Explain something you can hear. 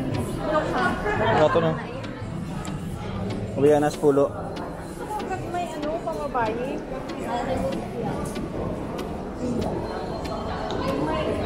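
A woman talks casually nearby.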